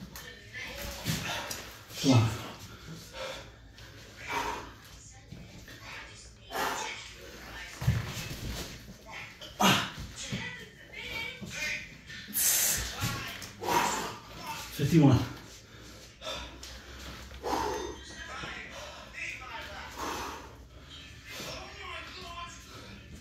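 A man breathes hard and puffs between efforts.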